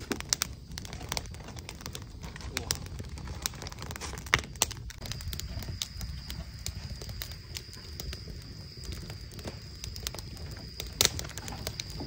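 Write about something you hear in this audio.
Small objects click and tap close by.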